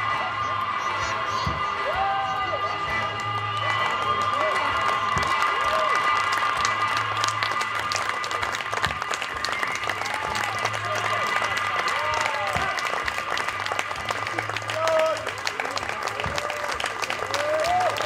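Live music plays outdoors in front of a crowd.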